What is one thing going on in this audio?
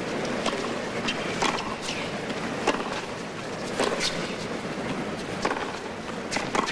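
A tennis ball is struck back and forth with sharp pops.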